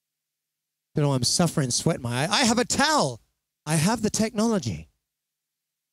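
A young man speaks animatedly into a microphone, close up.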